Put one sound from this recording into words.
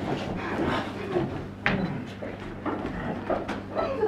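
Footsteps thud across a wooden stage.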